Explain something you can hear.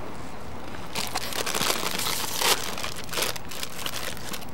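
A crisp plastic bag crinkles as it is torn open.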